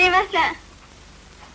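A teenage girl speaks cheerfully.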